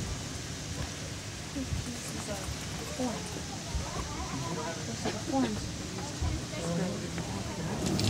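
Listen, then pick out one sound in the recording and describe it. Dry cane splints rustle and crackle as they are woven by hand.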